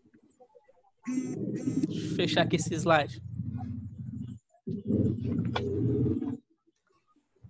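A young woman talks through an online call.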